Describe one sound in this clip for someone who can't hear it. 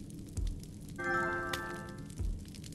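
A short notification chime rings out.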